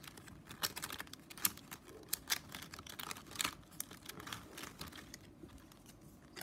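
Plastic strips rustle and click as hands weave them.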